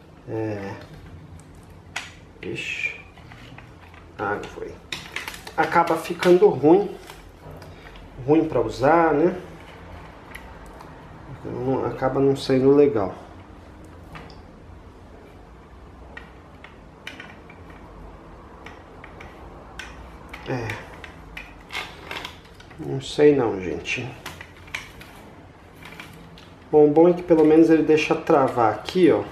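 A metal tripod clicks and rattles as hands adjust it.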